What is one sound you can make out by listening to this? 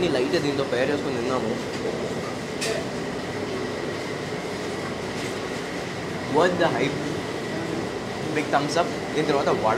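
A young man speaks with animation, close to a clip-on microphone.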